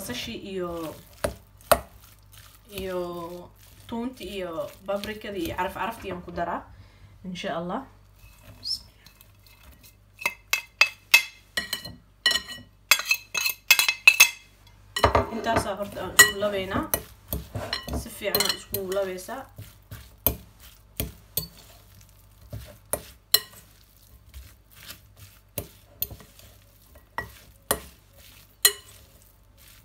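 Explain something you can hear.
Raw ground meat squelches as it is mashed and mixed.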